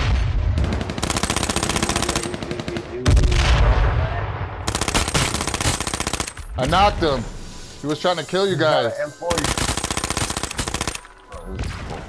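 An automatic rifle fires in loud rapid bursts.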